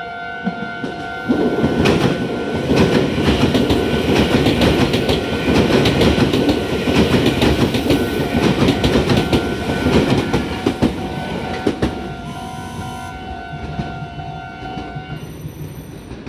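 A level crossing bell rings steadily, then stops.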